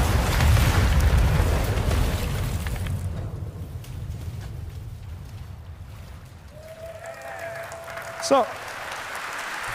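Waves crash and wash over rocks, outdoors in wind.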